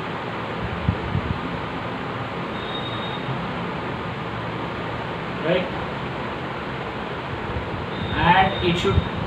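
A middle-aged man speaks calmly into a clip-on microphone.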